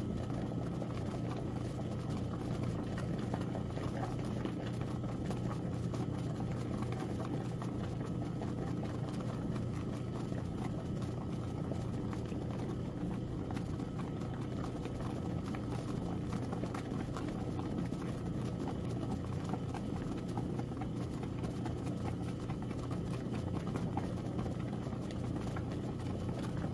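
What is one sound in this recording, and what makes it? Soapy water sloshes and splashes inside the washing machine drum.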